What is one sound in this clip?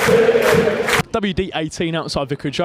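A young man speaks cheerfully into a microphone up close.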